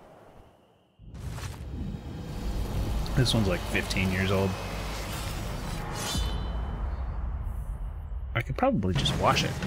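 A deep magical whoosh swells and rings out.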